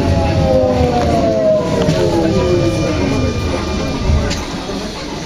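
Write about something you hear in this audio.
A train's electric motor whines and drops in pitch.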